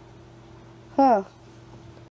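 A young woman exclaims briefly in a cartoonish voice.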